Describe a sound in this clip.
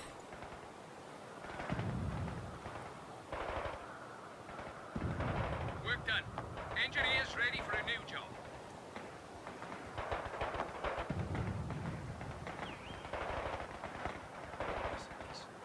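Machine guns and rifles fire in rapid bursts.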